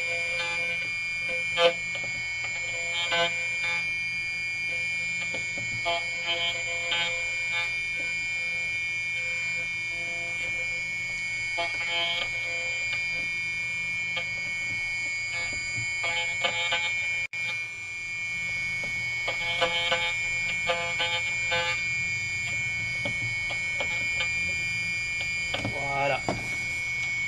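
A small machine motor whines steadily.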